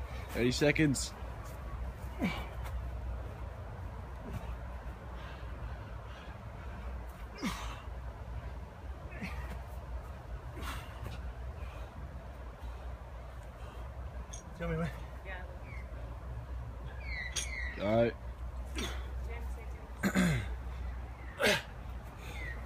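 An elderly man grunts and breathes hard with effort.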